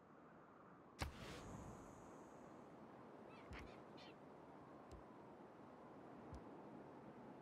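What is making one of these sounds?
Short interface clicks sound a few times.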